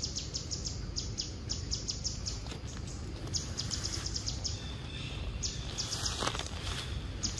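A monkey chews and slurps wet fruit up close.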